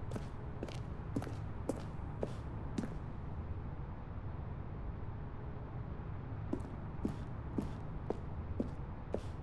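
Footsteps thud steadily on a hard concrete floor in a large echoing hall.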